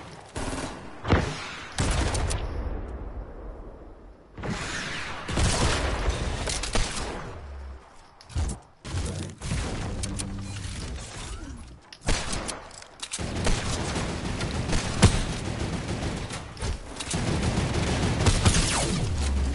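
A gun fires in sharp bursts.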